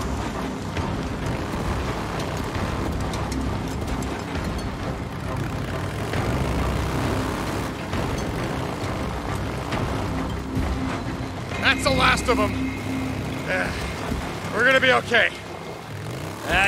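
A motorcycle engine rumbles steadily as it rides along.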